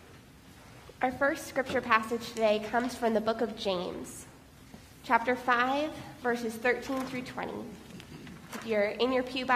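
A woman speaks calmly into a microphone.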